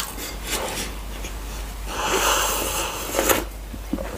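A man gulps a drink from a glass.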